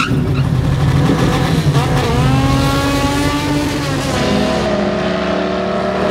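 A car speeds away with a rising engine roar.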